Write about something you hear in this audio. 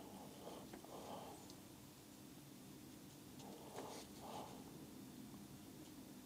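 A paintbrush softly brushes across paper.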